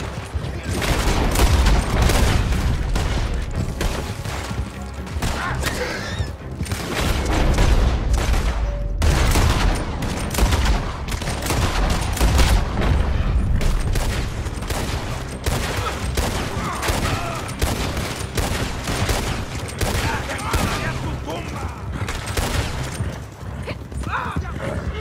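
Gunshots crack repeatedly.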